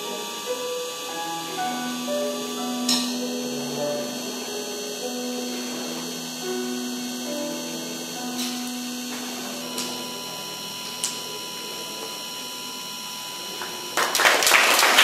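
An electric keyboard plays a slow, gentle melody in a large room.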